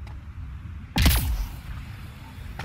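A heavy body lands with a loud thud on metal.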